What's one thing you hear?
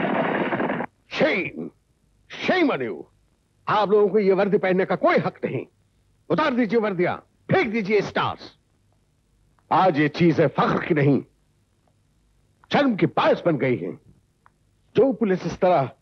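A middle-aged man speaks firmly and clearly nearby, with pauses.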